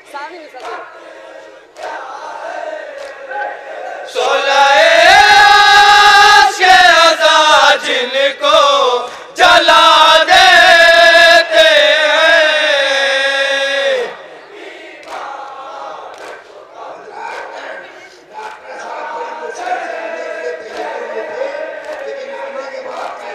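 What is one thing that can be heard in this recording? A group of men chant along in chorus.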